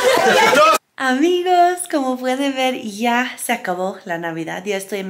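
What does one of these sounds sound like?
A young woman speaks cheerfully close to the microphone.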